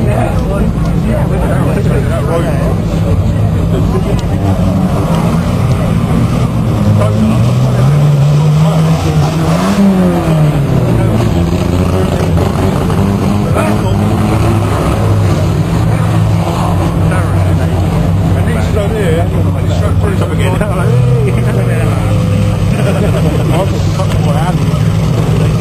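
Many car engines roar and rev loudly outdoors.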